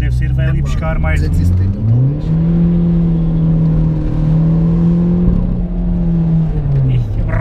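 A car engine hums and revs up, then holds a steady drone.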